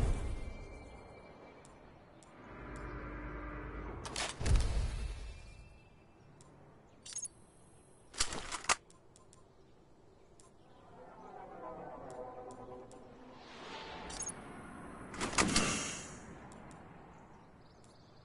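Short electronic clicks and chimes sound as menu items are selected.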